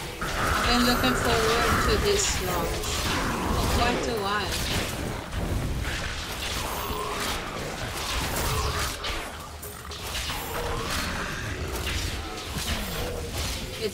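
Monsters screech and growl.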